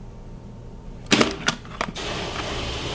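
A door latch clicks.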